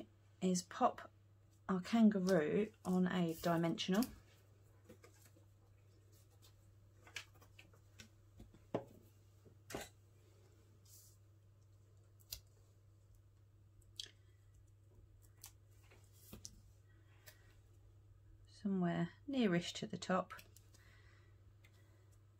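Paper rustles and taps softly as pieces are pressed onto card.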